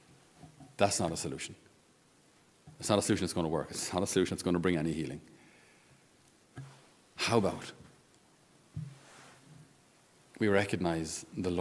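A middle-aged man speaks calmly into a microphone, with pauses, in a slightly echoing room.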